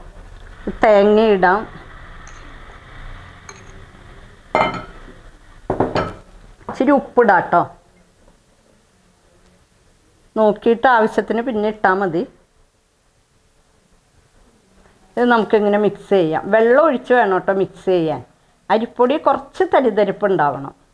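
A middle-aged woman talks calmly and clearly into a close microphone.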